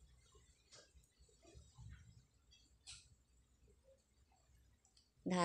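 A crochet hook softly clicks and rustles through yarn.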